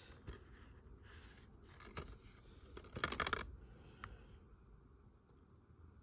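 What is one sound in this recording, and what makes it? A plastic case rattles as a hand turns it over.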